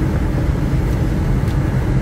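An elderly man bites into an apple with a crunch.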